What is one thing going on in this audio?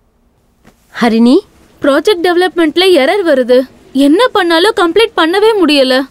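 A young woman speaks anxiously into a phone, close by.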